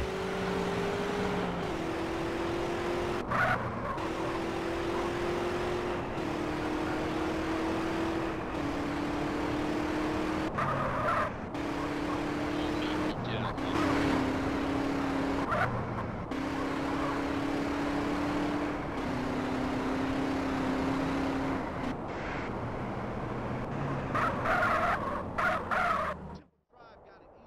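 A car engine hums steadily as it drives.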